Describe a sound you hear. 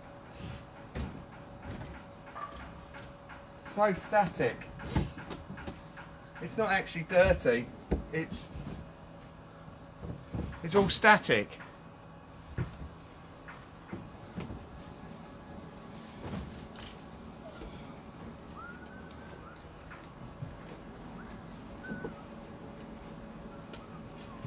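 A cloth squeaks as it rubs a plastic surface.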